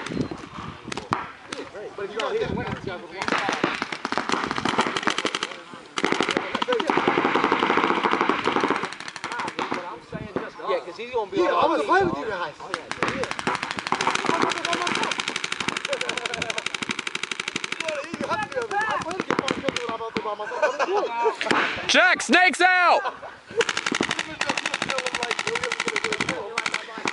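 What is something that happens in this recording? A paintball gun fires rapid popping shots nearby.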